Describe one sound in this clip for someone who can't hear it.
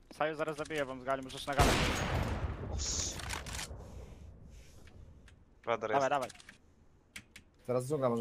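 Sniper rifle shots crack from a game.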